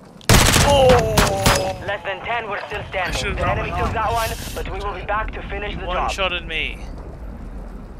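A young man talks excitedly close to a microphone.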